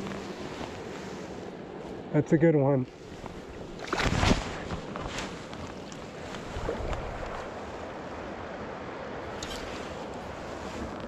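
A river flows steadily outdoors.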